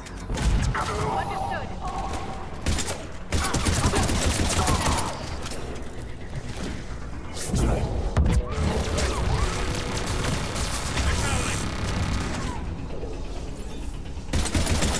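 Energy blasts whine and crackle.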